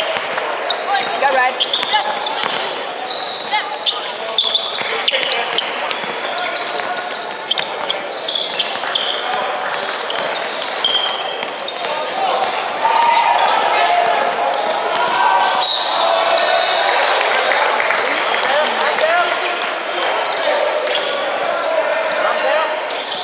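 A crowd of spectators and young players chatter and shout in an echoing hall.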